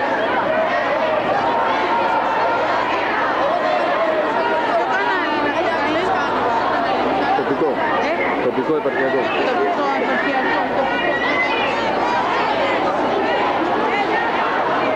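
A large crowd of men and women chatters and murmurs all around, outdoors.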